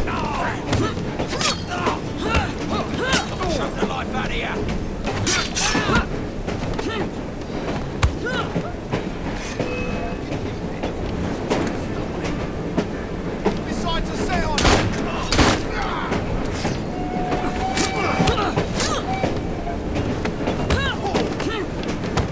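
Fists thud in heavy blows during a brawl.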